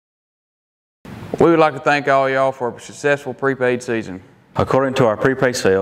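A young man speaks clearly and with animation, close to a microphone.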